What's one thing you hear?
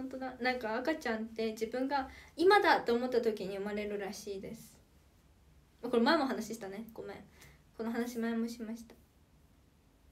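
A young woman talks animatedly, close to a microphone.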